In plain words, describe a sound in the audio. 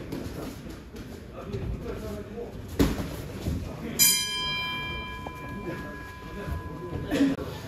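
Feet shuffle and thump on a padded ring floor.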